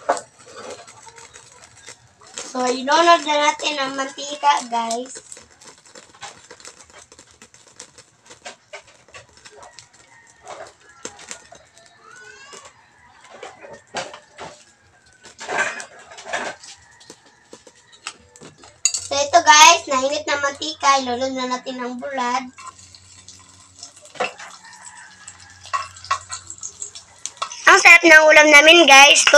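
Oil sizzles and crackles in a frying pan.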